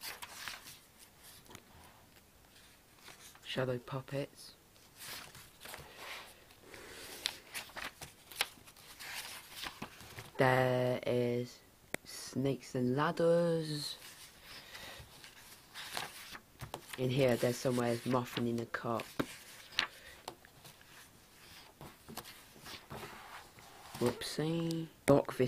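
Paper pages rustle and flip as a book is leafed through close by.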